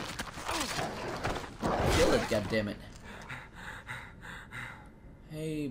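A dog snarls and growls fiercely close by.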